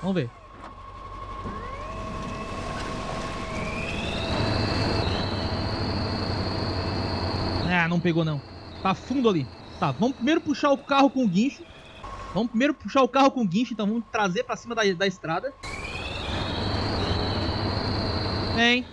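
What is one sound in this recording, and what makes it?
A truck engine roars and revs with a rising whine.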